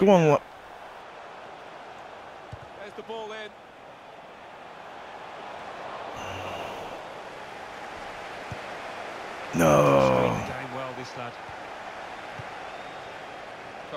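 A large stadium crowd murmurs and cheers steadily.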